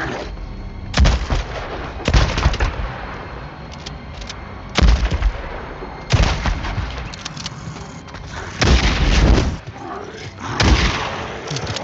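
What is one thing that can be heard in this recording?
A shotgun fires loud blasts, several times.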